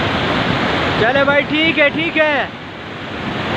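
A man calls out loudly over the rushing water.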